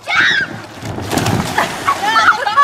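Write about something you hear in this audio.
Water splashes as a child is launched off an inflatable into a lake.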